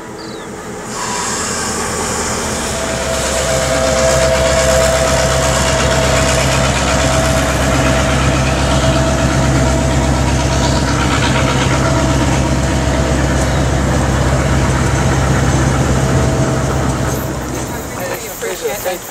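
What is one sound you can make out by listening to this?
A diesel engine rumbles loudly.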